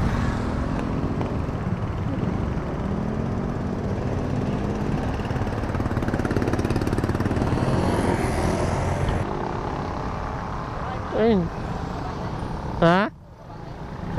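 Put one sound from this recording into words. Motorcycle engines rumble steadily close by.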